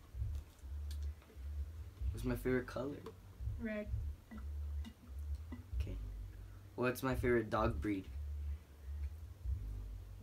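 A young woman gulps a drink.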